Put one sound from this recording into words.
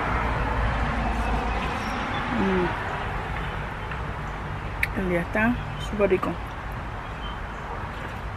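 A woman sips noisily from a mug.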